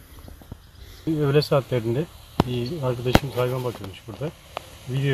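A middle-aged man speaks calmly and close by, outdoors.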